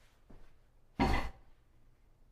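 A cardboard box is set down with a thud.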